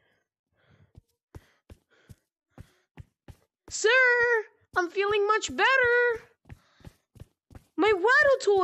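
Footsteps walk steadily on hard concrete.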